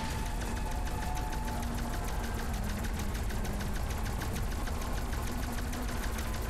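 A rapid-fire gun shoots in quick, steady bursts.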